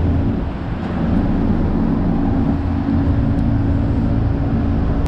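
A train's motor hums and whines as it pulls away.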